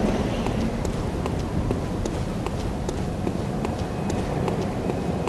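Footsteps thud on stone, steady and even.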